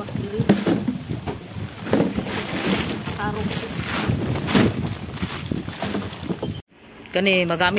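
A plastic sack rustles and crinkles.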